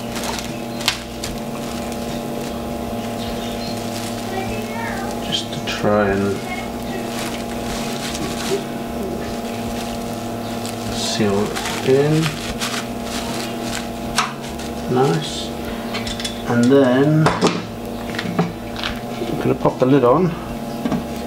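An electric brewing machine hums steadily.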